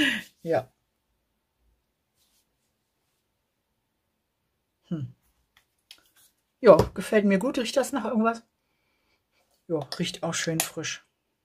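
A woman speaks calmly and close up, in short bursts with pauses.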